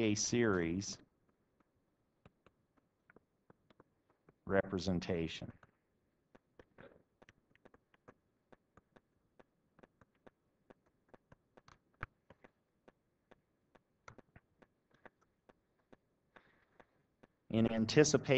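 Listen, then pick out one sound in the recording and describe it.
A pen taps and scratches on a tablet surface.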